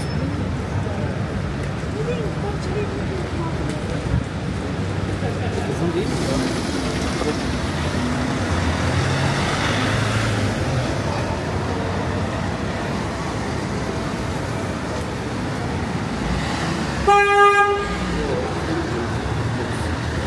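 Footsteps tap on a paved sidewalk.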